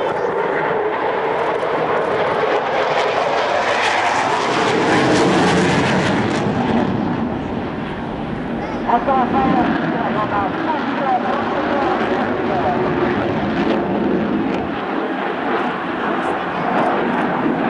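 A jet engine roars loudly overhead, rising and falling as the fighter jet banks past.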